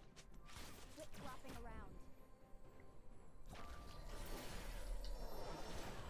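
Game spell effects whoosh and clash.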